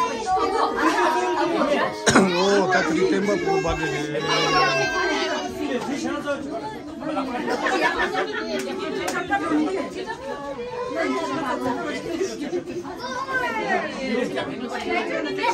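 Young children chatter and shout excitedly.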